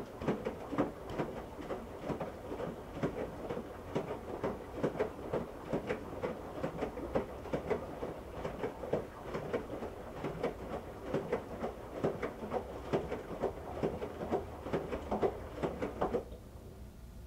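Water sloshes and splashes inside a turning washing machine drum.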